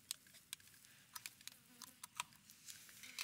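A small screwdriver clicks and ticks against metal parts.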